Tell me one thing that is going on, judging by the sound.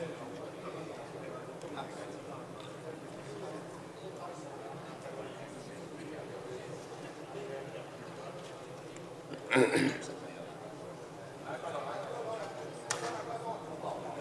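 Many people murmur quietly in a large hall.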